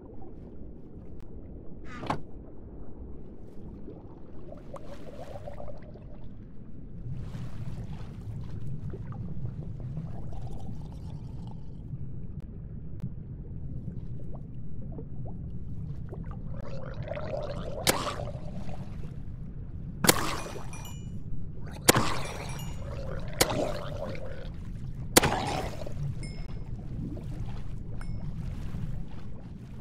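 Water swirls and bubbles around a swimmer underwater.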